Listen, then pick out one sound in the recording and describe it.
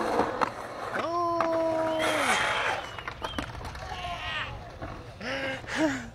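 Skateboard wheels roll and rumble over rough concrete.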